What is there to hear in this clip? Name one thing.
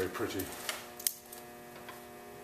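Metal parts clink softly as they are handled.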